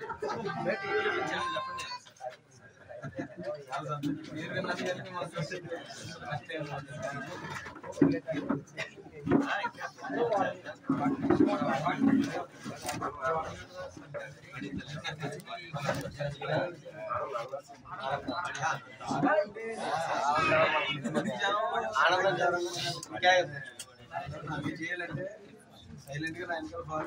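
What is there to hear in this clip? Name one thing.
Several men talk at once in a crowd close by, outdoors.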